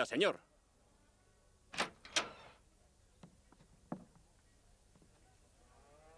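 A door latch rattles and a door creaks open.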